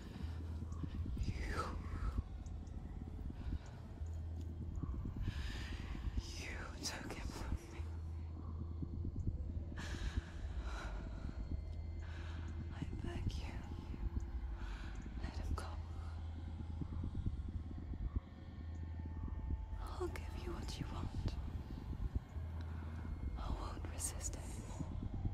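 A young woman pleads in a trembling, desperate voice, close by.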